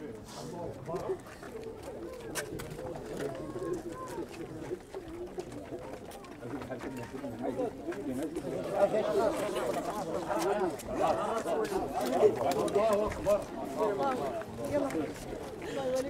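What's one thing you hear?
A crowd of men and women talks and murmurs nearby, growing louder.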